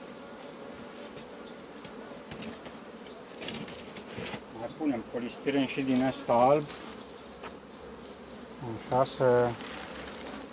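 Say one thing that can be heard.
Honeybees buzz around an open hive.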